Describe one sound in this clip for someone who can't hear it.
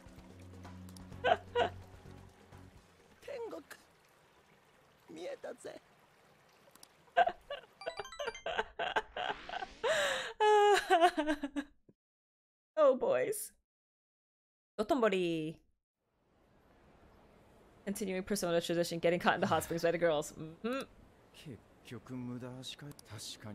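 A young woman talks and laughs with animation, close to a microphone.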